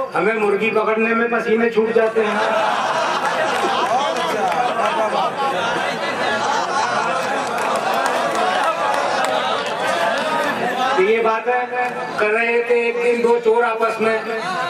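A man speaks forcefully into a microphone, heard through loudspeakers.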